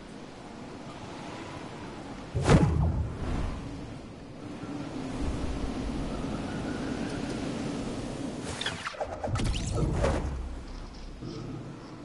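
Wind rushes steadily during a fall through the air.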